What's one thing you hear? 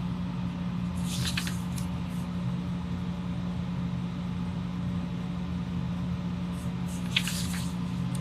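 Paper rustles as a sheet is flipped over.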